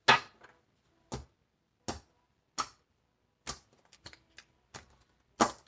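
Cards tap and slap sharply as they are shuffled close by.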